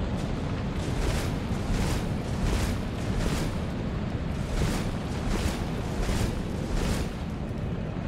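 Heavy footsteps run quickly across a stone floor.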